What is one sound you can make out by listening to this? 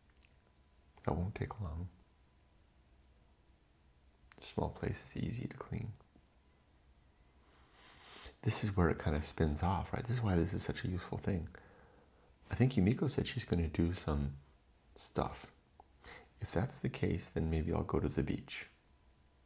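A middle-aged man speaks calmly and thoughtfully into a close microphone, with pauses.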